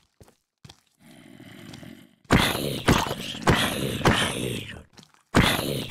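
A game zombie groans.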